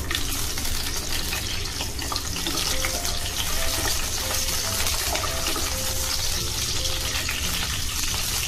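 A wooden spatula stirs and scrapes against a pan.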